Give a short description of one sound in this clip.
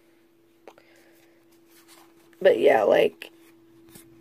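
Playing cards rustle and flick against each other.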